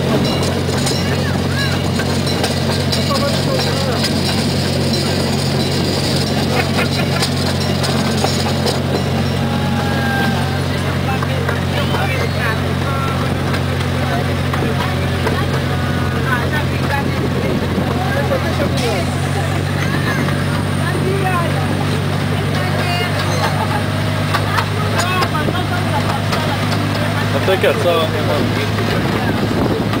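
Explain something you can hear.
Adults and children chatter close by.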